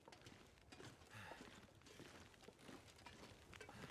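A fire crackles softly in a stove.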